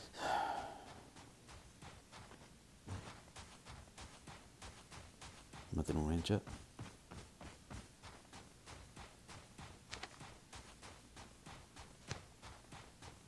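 Footsteps crunch steadily over snow and grass.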